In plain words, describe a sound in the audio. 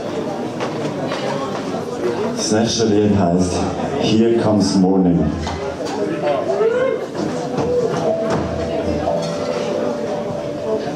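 A band plays loud live rock music with electric guitar and keyboards in a reverberant hall.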